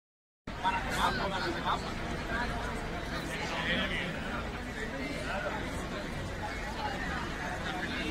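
A large outdoor crowd murmurs and chatters loudly.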